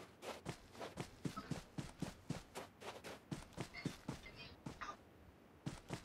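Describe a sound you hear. Quick footsteps run over dry ground.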